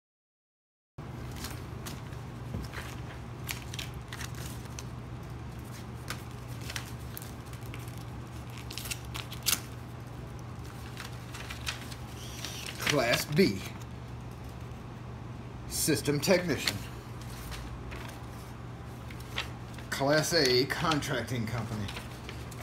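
Paper rustles and crinkles as an envelope is handled and opened.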